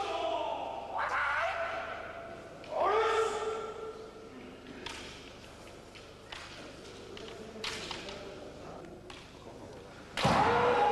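Two fighters shout long, loud cries in an echoing hall.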